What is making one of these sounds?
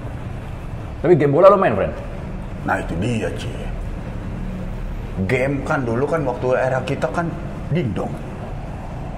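A second man talks in reply up close.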